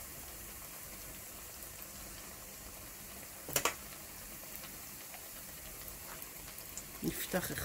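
Batter sizzles and crackles in hot oil.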